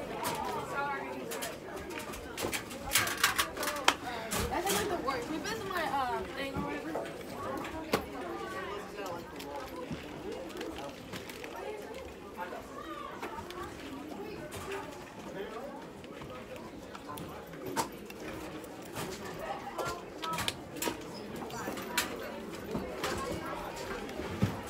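Many young people chatter nearby in an echoing hall.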